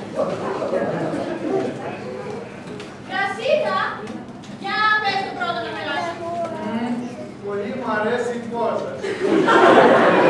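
A woman speaks with animation in an echoing hall.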